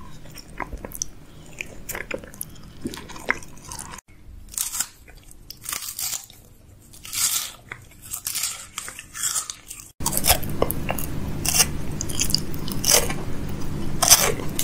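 A man chews crunchy food close to a microphone.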